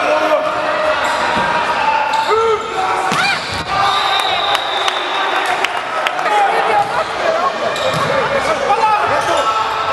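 A volleyball thuds as players strike it.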